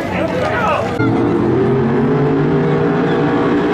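A race car engine revs hard.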